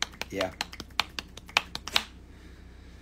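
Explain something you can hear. A man claps his hands rapidly close by.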